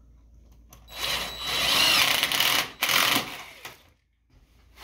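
A cordless drill whirs loudly in short bursts.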